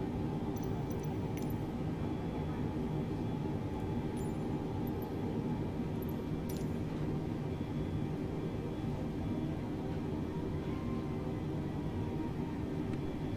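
Jet engines hum steadily at idle.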